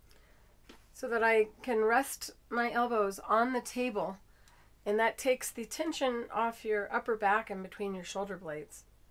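A woman talks calmly and with animation, close to a microphone.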